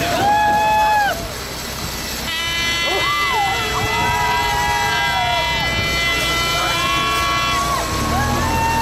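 A group of young people cheer and shout from the back of a truck outdoors.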